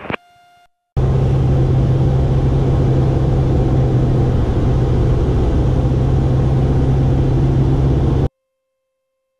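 An airplane engine drones steadily.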